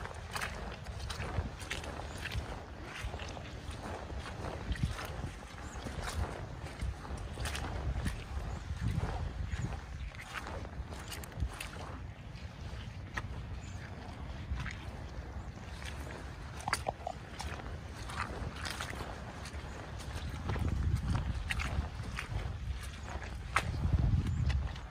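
Boots squelch and slap through wet mud with each step.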